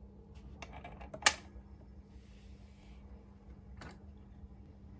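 A record player's switch clicks sharply a few times.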